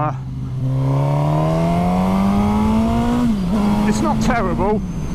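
A motorcycle engine drones and climbs in pitch as the bike speeds up, then drops as it shifts gear.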